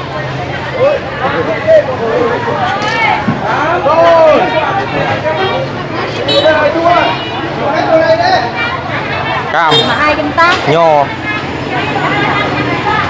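A busy crowd of men and women talks loudly all around.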